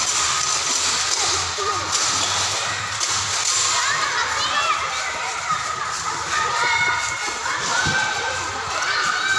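A trampoline mat creaks and thumps as children bounce.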